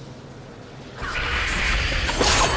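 A magic blast crackles and whooshes loudly.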